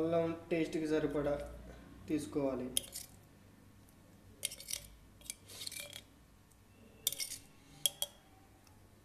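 A spoon scrapes and taps against a pot.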